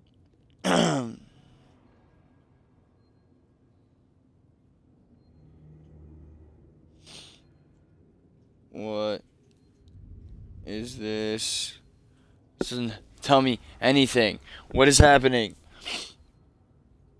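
A young man speaks with animation into a nearby microphone, in short bursts.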